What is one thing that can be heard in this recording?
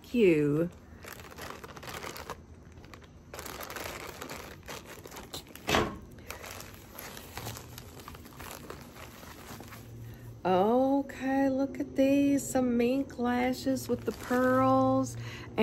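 A middle-aged woman talks with animation close to the microphone.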